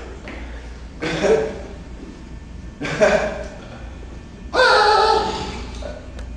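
A young man shouts and groans loudly in short bursts nearby.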